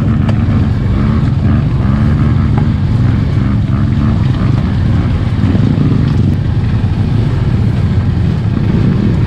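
A dirt bike engine rumbles up close, its pitch wavering as the throttle changes.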